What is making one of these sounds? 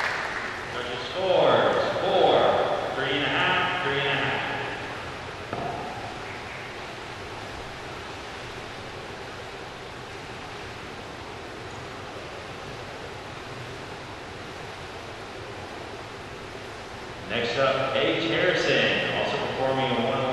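Girls talk and call out in a large echoing hall.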